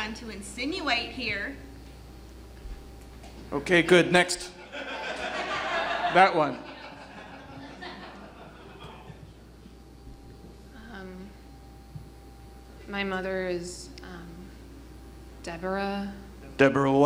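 A young man and young women speak in turn, heard through microphones in a large room.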